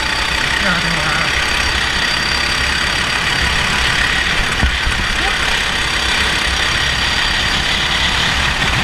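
A small kart engine drones loudly throughout.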